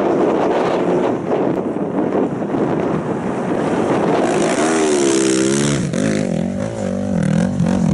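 A motorcycle engine roars and revs up and down.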